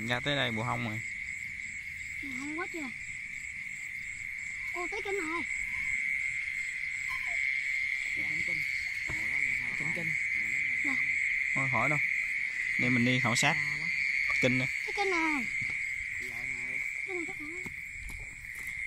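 Young boys talk and call out nearby.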